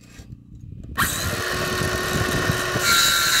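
A circular saw whirs loudly as it starts cutting wood.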